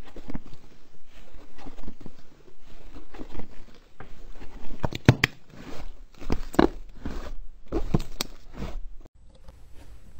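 Hands squish and squeeze soft, sticky slime with wet crackling pops.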